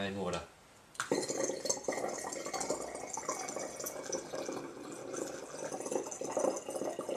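Water pours through a funnel into a jar.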